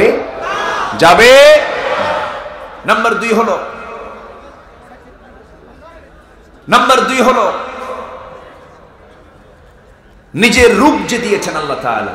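A man chants loudly into a microphone in bursts, with a long echo.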